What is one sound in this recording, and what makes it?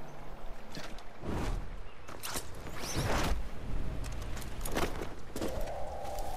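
Leafy branches rustle as someone pushes through them.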